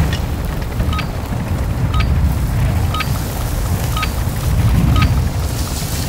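A countdown timer beeps once a second.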